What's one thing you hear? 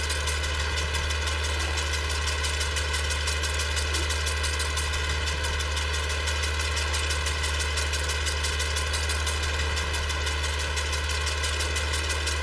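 A mower cuts through tall grass with a steady whir.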